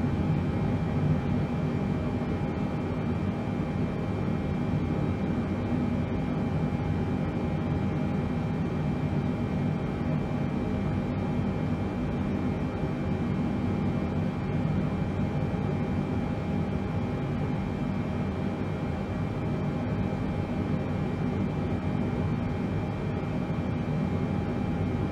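Aircraft engines hum steadily from inside a cockpit.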